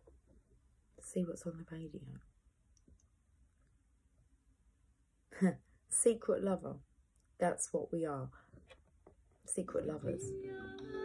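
A young woman talks calmly and closely into a microphone, in short bursts with pauses.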